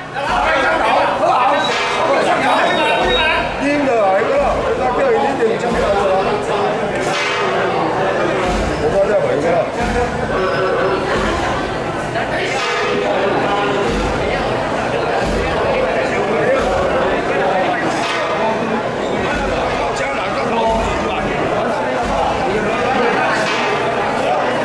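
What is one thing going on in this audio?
A crowd of men and women chatters throughout, in a room with some echo.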